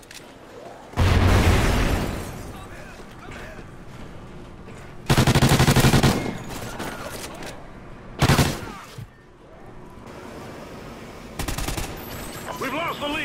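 Rapid gunfire bursts out in loud volleys.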